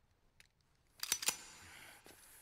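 A pistol fires twice in quick succession, echoing.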